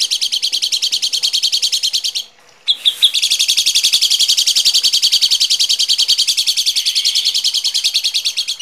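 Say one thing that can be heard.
A small bird chirps rapidly and harshly, over and over.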